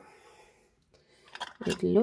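A metal lid is screwed onto a glass jar.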